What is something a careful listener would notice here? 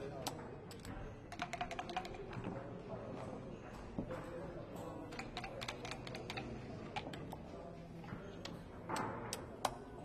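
Dice rattle in a cup and clatter onto a board.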